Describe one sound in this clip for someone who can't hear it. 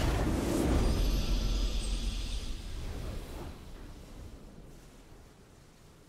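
A triumphant musical fanfare plays and fades.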